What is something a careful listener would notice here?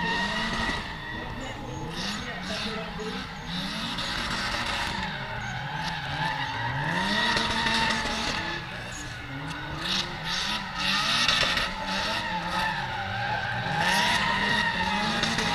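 Tyres squeal on asphalt as cars slide in the distance.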